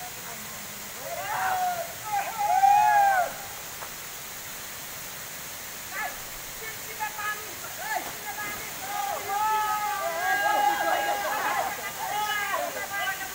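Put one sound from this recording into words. Young men shout and call out excitedly outdoors.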